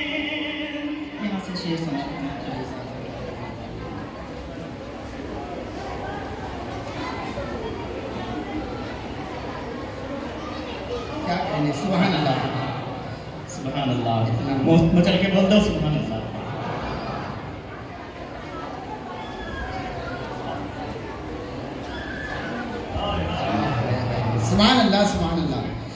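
A man chants melodiously into a microphone, heard through loudspeakers in a large echoing hall.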